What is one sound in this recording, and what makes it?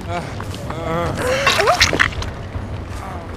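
A young woman screams in pain.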